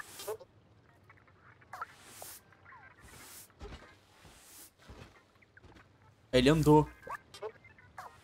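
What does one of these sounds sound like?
A broom sweeps across a hard floor in short strokes.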